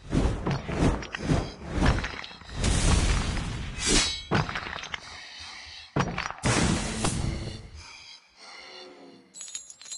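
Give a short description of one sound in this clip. Blows thud and clash repeatedly in a fight.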